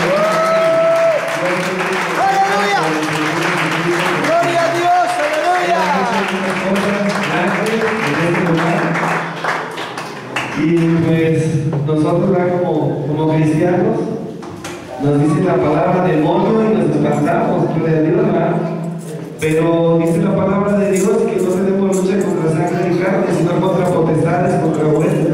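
A man speaks with emotion into a microphone, heard through loudspeakers in an echoing hall.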